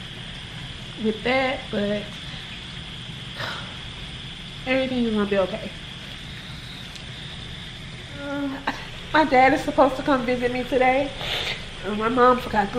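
A young woman speaks close by in a soft, tired voice, with pauses.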